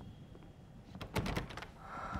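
A door knocks and creaks as it is pushed.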